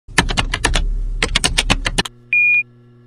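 Rapid typing clicks patter in quick bursts.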